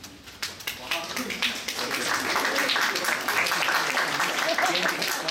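A small crowd applauds outdoors.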